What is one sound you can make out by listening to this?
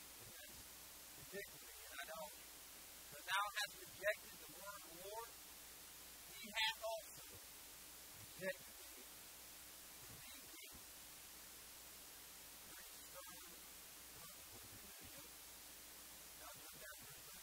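A man reads aloud slowly through a microphone in an echoing hall.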